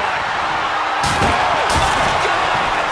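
A wooden table smashes with a loud crash.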